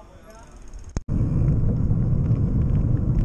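Wind rumbles loudly over the microphone.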